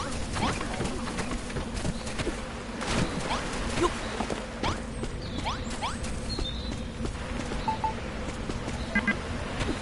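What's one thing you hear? Quick light footsteps patter across soft ground.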